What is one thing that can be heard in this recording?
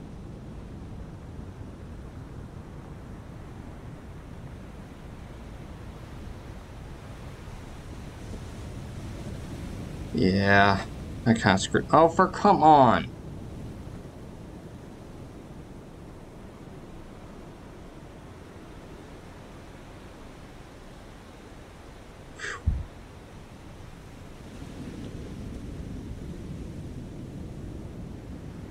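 Waves wash and rush on the open sea.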